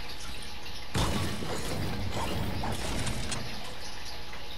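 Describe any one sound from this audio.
A pickaxe smashes through a wooden wall with loud cracking blows.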